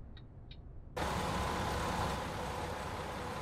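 A bus engine roars loudly close by.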